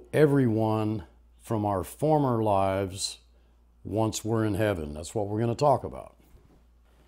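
An older man speaks calmly and earnestly, close to a microphone.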